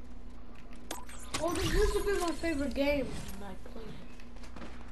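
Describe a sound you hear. A bright magical chime swells and shimmers.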